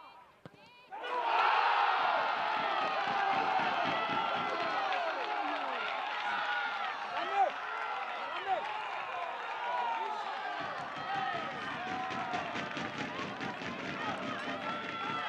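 Young men shout and cheer in celebration outdoors.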